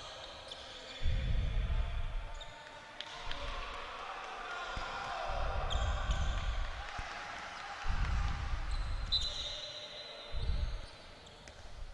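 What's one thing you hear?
A ball bounces on a hard court in a large echoing hall.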